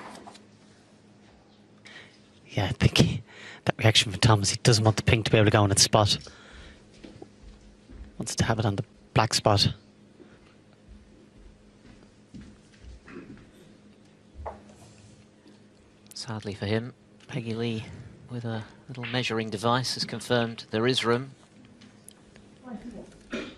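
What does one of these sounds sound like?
Snooker balls click softly together as they are set in place.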